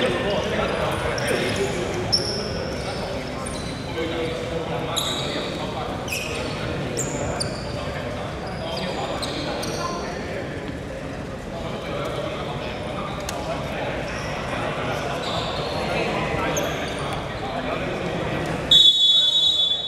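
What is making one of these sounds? Young men chat casually nearby.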